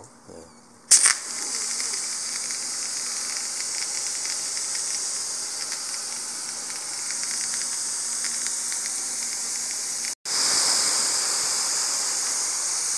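A hose nozzle sprays water with a steady hiss.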